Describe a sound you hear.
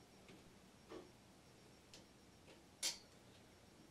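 Knobs on an amplifier click as they are turned.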